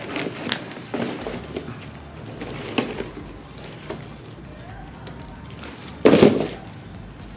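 Cardboard rustles and scrapes as a box is pulled away.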